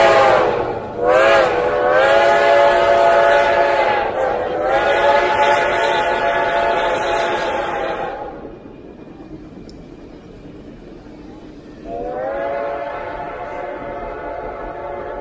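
Passenger train cars rumble and clatter along the track.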